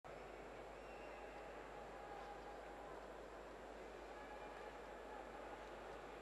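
A large stadium crowd murmurs and chatters steadily in a wide open space.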